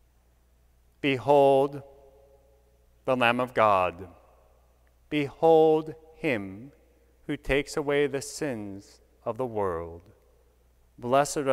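A man chants slowly through a microphone in an echoing hall.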